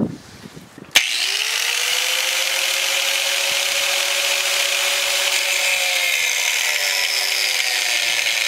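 An angle grinder starts with a sharp click and spins up to a steady high whine.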